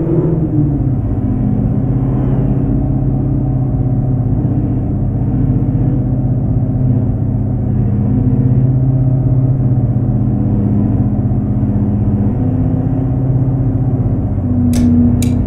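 A car engine hums steadily and shifts in pitch as the car drives.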